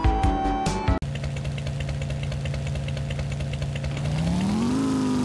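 A motorcycle engine idles with a low, steady hum.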